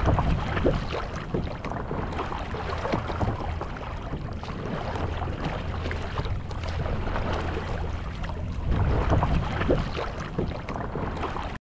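Water laps and rushes against the hull of a paddle board.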